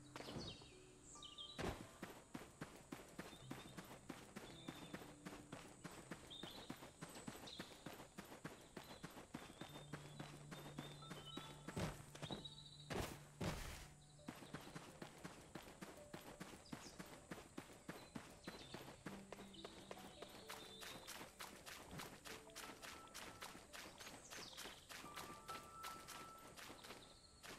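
Quick footsteps patter steadily over grass and rock.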